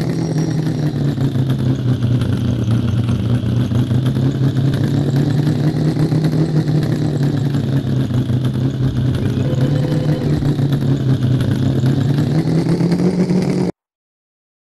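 A truck engine rumbles and strains steadily.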